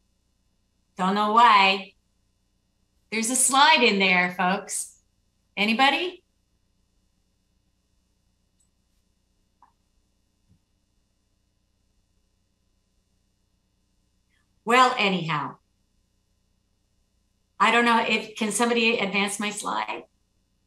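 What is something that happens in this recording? A woman speaks calmly into a microphone over an online call, with long pauses.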